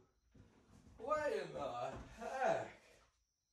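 A man speaks casually up close.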